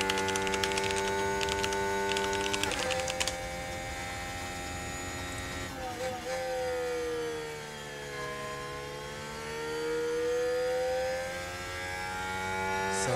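A racing car engine whines at high revs, dropping through gear changes, easing off and then climbing again.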